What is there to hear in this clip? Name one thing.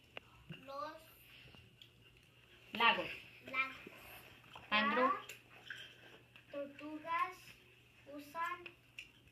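A young girl speaks nearby in a high voice, in short phrases.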